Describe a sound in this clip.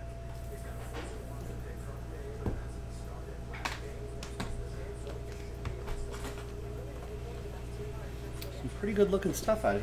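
Cardboard boxes knock and slide on a table.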